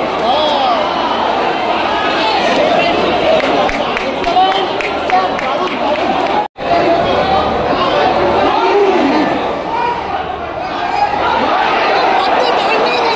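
A large crowd of fans chants and cheers loudly all around in a vast open stadium.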